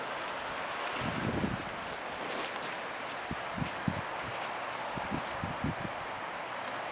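A horse's hooves thud softly on straw-covered ground.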